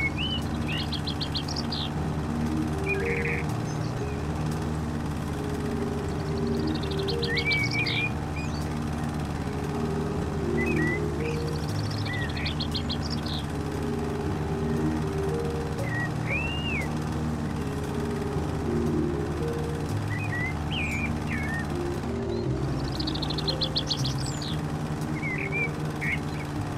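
A lawn mower engine hums steadily.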